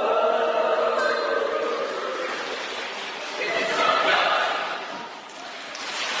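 A mixed choir of young men and women sings together in a large echoing hall.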